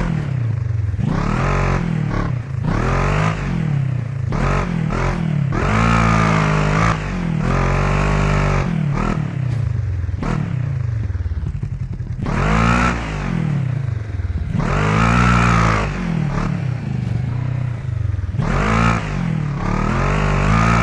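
A buggy engine revs hard and drops off again and again.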